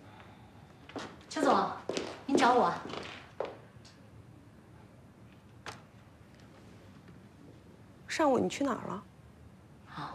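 A woman speaks calmly and firmly, asking a question.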